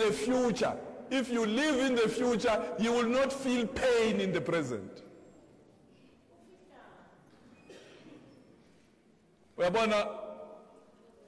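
A middle-aged man sings with animation.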